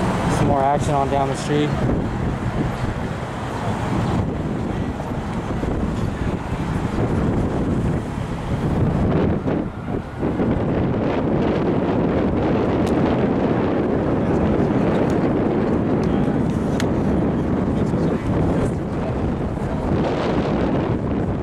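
A crowd of people chatter outdoors on a busy street.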